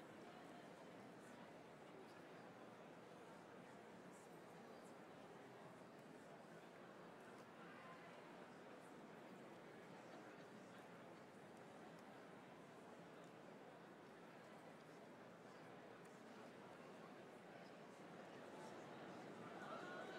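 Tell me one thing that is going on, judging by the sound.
A large audience murmurs and chatters throughout a big echoing hall.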